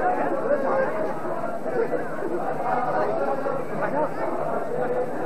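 A crowd of men chant together loudly outdoors.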